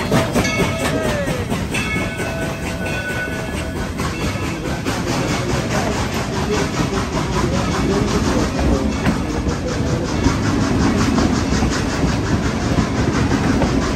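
Passenger cars rumble and clatter past on rails.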